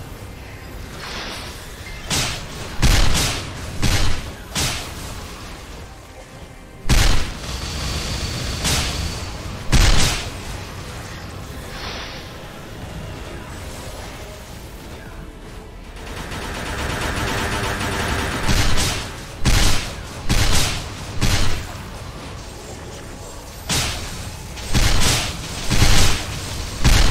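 Game spell effects whoosh and explode in rapid bursts.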